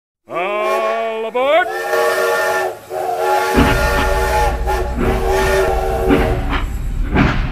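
A toy train whistle toots.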